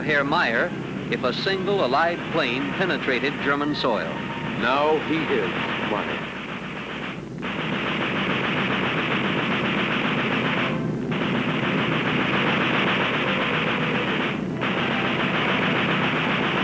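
An aircraft engine roars steadily overhead.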